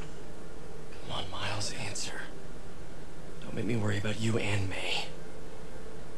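A young man talks calmly on a phone.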